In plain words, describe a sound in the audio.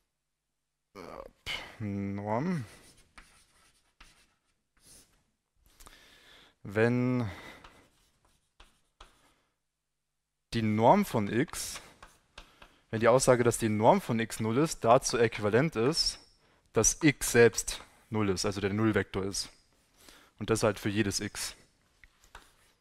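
A man speaks calmly in a large echoing hall, pausing between phrases.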